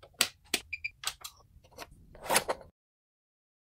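A metal buckle clicks as it is fastened.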